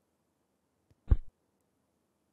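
A telephone receiver is set down with a clunk.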